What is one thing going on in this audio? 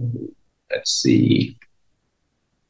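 A young man speaks briefly over an online call.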